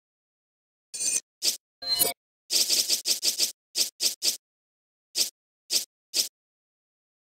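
Short electronic menu clicks sound one after another.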